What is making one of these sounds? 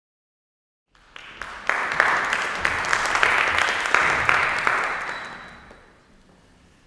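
An audience claps in a large echoing hall, and the applause fades away.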